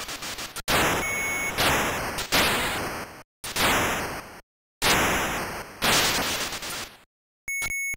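A short, high electronic beep sounds from the game.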